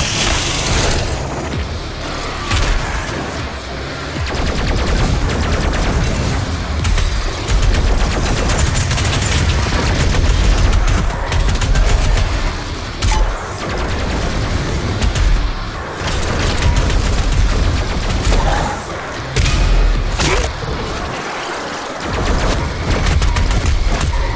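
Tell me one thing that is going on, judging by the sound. A heavy gun fires in rapid bursts.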